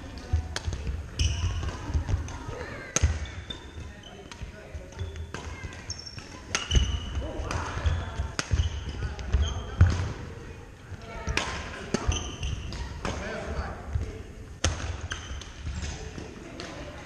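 Sneakers squeak and patter on a wooden floor.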